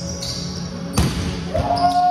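A volleyball is struck with a loud thump in an echoing hall.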